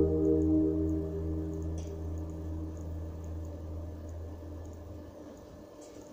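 An electric guitar plays a chord that rings out and slowly fades.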